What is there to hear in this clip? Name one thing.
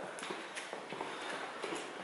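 Footsteps echo along a hard floor.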